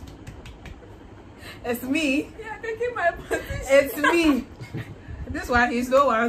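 Young adults laugh together close by.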